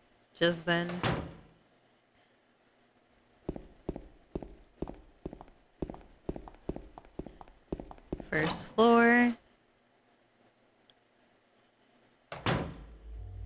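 A young woman exclaims loudly into a microphone, close up.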